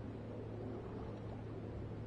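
Water splashes as a fish thrashes at the surface.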